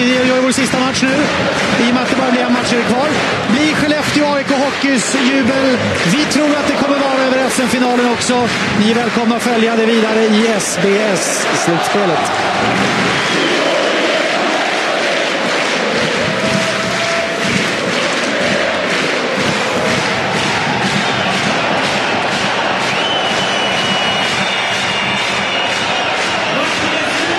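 A large crowd in an arena chants and roars loudly.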